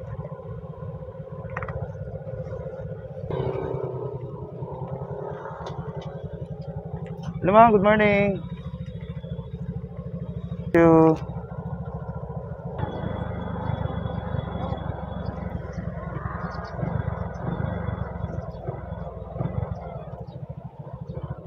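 A motorcycle engine putters steadily close by.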